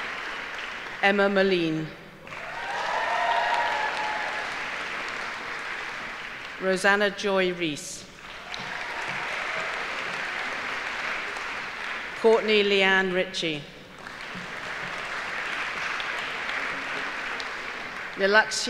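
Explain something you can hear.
A middle-aged woman reads out through a microphone.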